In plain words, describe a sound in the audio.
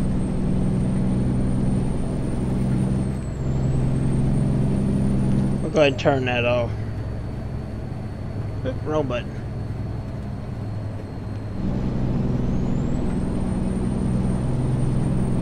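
Tyres hum on a wet road.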